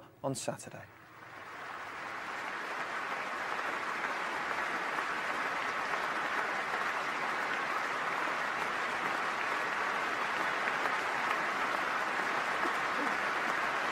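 A large crowd applauds steadily outdoors.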